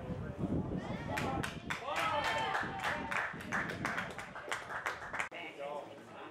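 Spectators cheer and clap after a goal.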